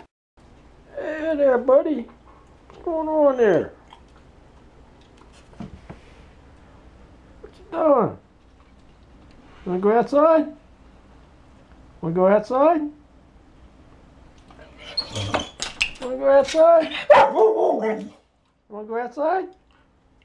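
A dog whines loudly in long, high, wavering cries.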